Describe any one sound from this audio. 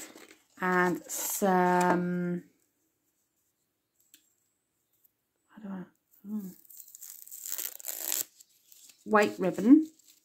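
Paper and ribbon rustle softly as hands handle them.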